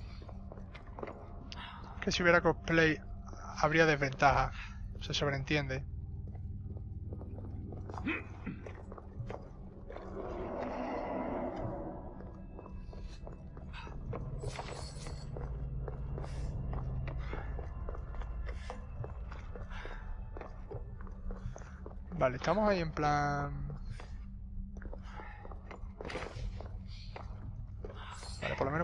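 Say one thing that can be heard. Footsteps scrape on rocky ground.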